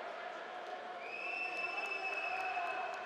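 A referee's whistle blows long and steady.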